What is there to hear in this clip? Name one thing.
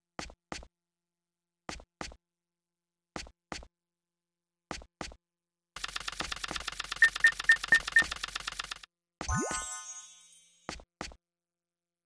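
Short electronic blips sound in pairs at a steady pace.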